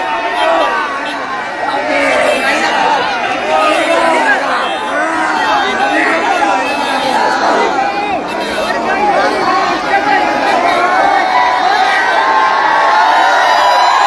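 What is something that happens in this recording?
A man shouts to the crowd.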